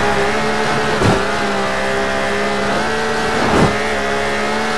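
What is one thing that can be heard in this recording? A car engine briefly drops in pitch as the gears shift.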